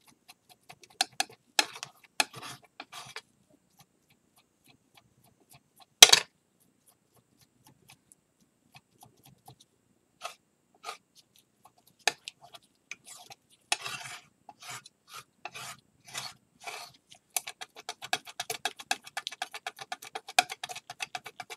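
A palette knife scrapes and taps against a hard surface.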